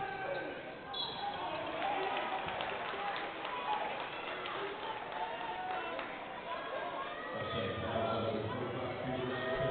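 A basketball bounces on a wooden floor in an echoing hall.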